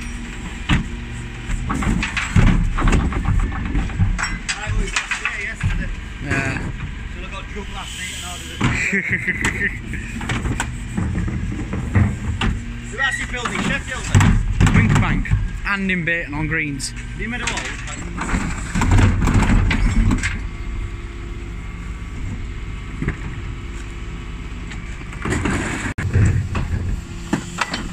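A truck engine hums steadily nearby.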